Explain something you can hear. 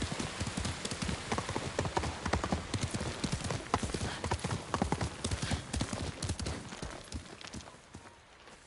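Horse hooves clop quickly over rocky ground.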